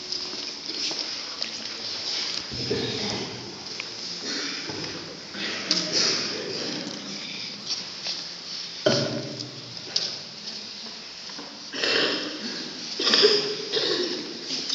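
A young girl recites loudly into a microphone in a large echoing hall.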